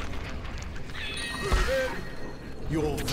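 A game chime rings out.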